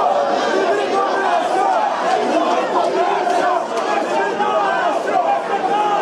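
A young man shouts up close.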